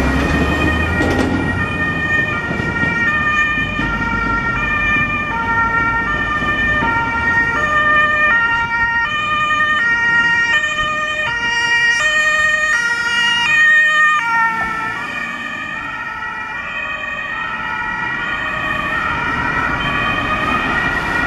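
An ambulance siren wails in a two-tone pattern, loud and close, then fading into the distance.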